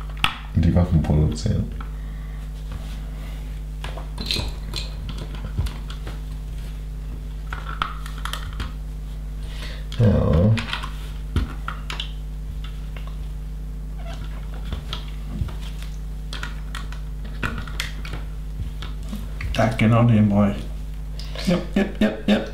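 Small plastic pieces click and rattle as they are snapped together.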